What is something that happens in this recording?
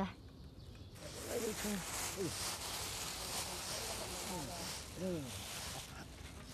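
A middle-aged man speaks calmly outdoors.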